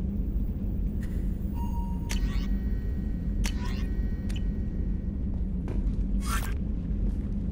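Short electronic menu tones chime and beep.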